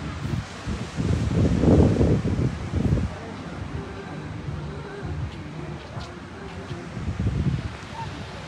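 Wind gusts rumble past outdoors.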